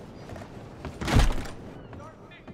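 A door bangs open.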